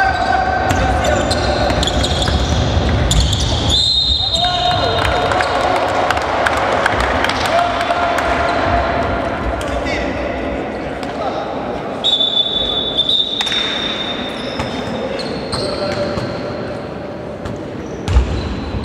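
A basketball bounces with hollow thuds.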